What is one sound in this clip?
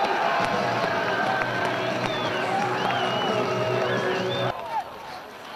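A crowd cheers and shouts in a large outdoor arena.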